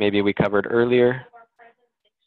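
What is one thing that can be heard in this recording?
A man speaks calmly and close into a headset microphone.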